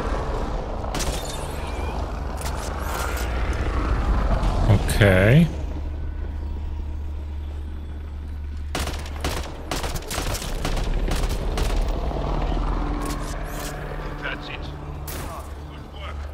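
Rifle shots crack sharply, one after another.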